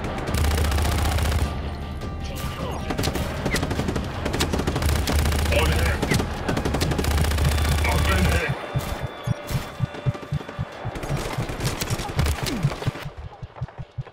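Rapid gunfire bursts loudly and echoes.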